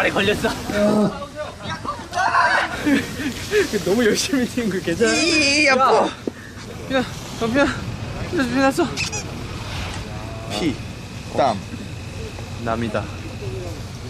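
Young men talk and exclaim with animation close by.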